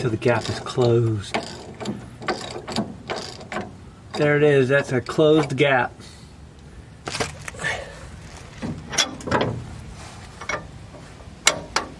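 Metal tools click and clank against a car's underside.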